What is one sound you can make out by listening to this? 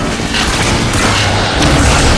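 A laser gun fires a sustained crackling beam.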